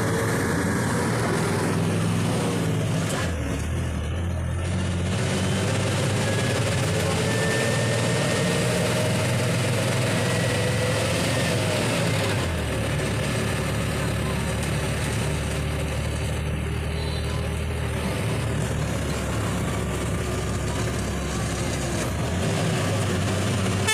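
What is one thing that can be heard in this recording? A motorcycle engine hums steadily, rising and falling in pitch.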